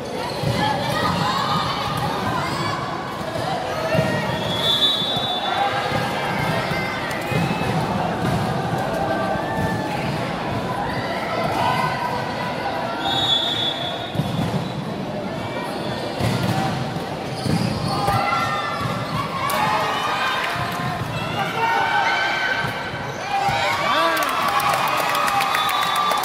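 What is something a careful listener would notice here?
A crowd of young spectators shouts and cheers in a large echoing hall.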